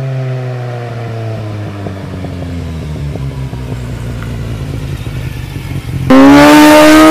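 A motorcycle engine approaches and roars past close by.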